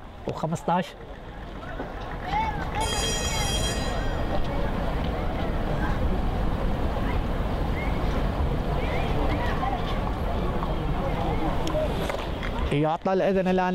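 A crowd murmurs in the distance.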